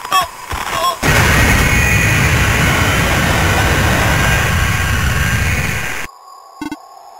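A harsh burst of glitchy static roars, then cuts off abruptly.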